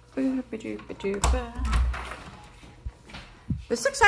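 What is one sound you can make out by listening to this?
A door latch clicks as a door opens.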